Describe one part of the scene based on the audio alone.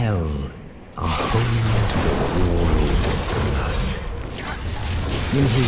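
Magic spells crackle and boom in a fierce fight.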